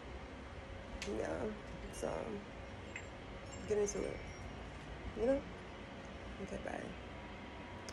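A young woman speaks softly in short phrases close by.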